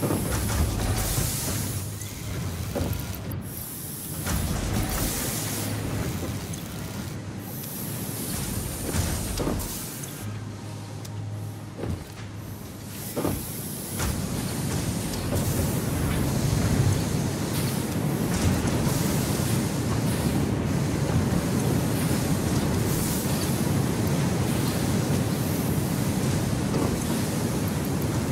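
Machines hum and clank steadily nearby.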